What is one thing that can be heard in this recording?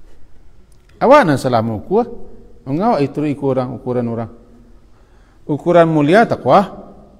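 A middle-aged man speaks with animation into a close microphone.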